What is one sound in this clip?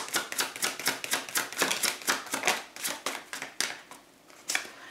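Playing cards riffle and flap quickly as a deck is shuffled.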